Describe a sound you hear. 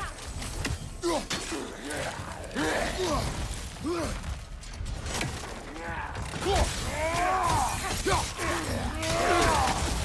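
Heavy blows and impacts land in a fight.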